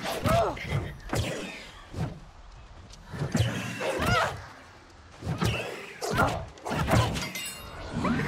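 A bow string twangs as an arrow flies.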